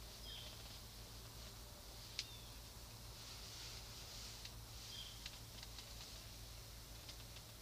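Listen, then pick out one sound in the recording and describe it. A crossbow clicks and knocks as it is handled.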